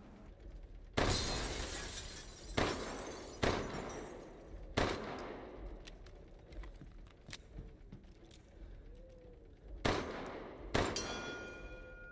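Pistol shots boom and echo through a large hall.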